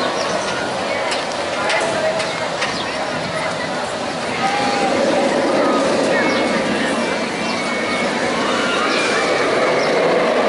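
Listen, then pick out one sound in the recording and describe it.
A roller coaster train rumbles and roars along its track.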